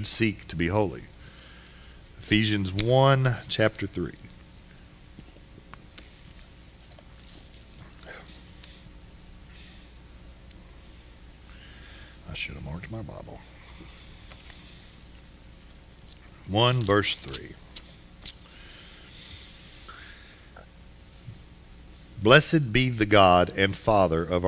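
A man speaks through a microphone in a slow, deliberate way, with long pauses.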